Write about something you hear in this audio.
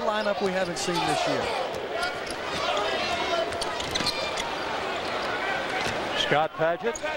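A large crowd cheers and roars in an echoing arena.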